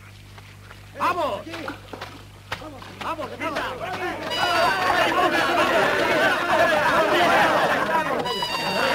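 A crowd of men shouts and yells as they charge forward.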